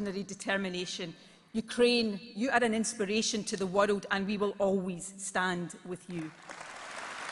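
A middle-aged woman speaks firmly through a microphone in a large hall.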